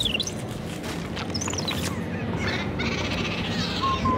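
Creatures snarl and clash in a scuffle.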